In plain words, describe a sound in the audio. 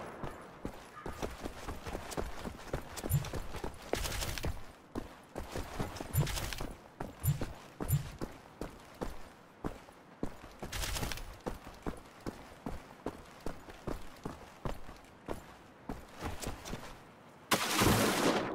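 Footsteps crunch at a steady walking pace.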